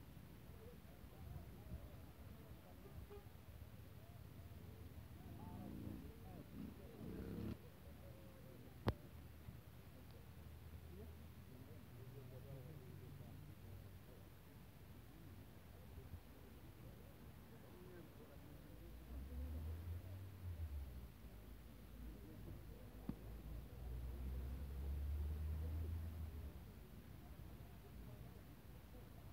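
Men and women talk faintly in the distance outdoors.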